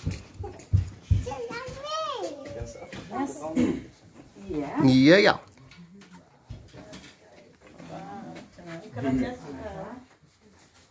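A young girl squeals and chatters excitedly.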